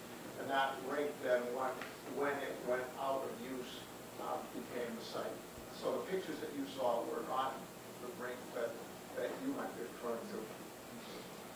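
An elderly man speaks with animation to an audience in a hall.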